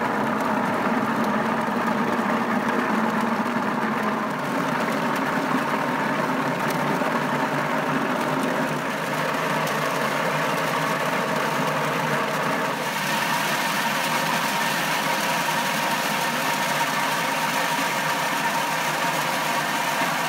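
Water sprays and splashes onto the walnuts.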